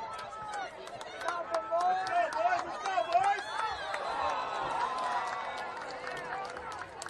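Men on the sideline shout and cheer loudly.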